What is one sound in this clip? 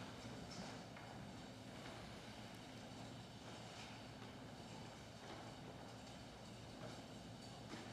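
Footsteps knock softly on a wooden floor.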